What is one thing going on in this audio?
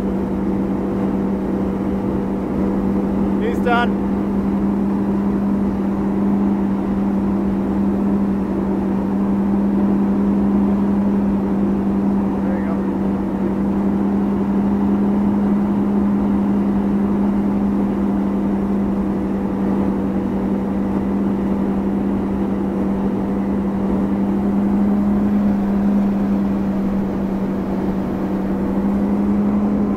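A boat engine drones steadily and loudly.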